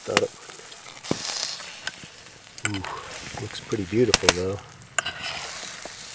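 Metal tongs scrape against a pan.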